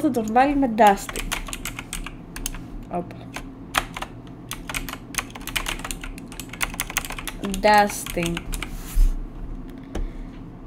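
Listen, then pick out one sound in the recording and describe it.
Keys on a keyboard click rapidly.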